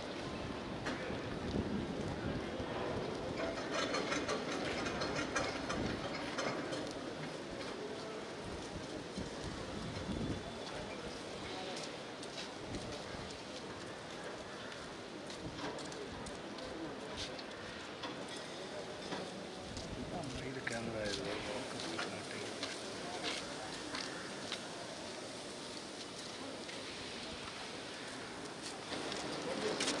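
A crowd of men and women murmur and chatter nearby.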